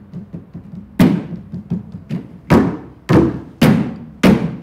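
Men strike plastic buckets on a table with loud, hollow thumps.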